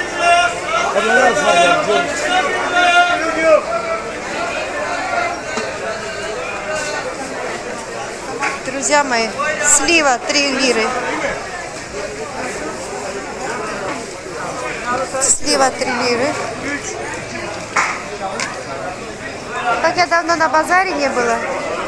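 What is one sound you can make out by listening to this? A busy crowd of men and women chatters nearby.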